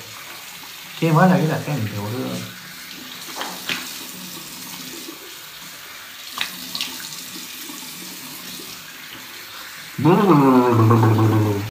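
A young man speaks close by with animation.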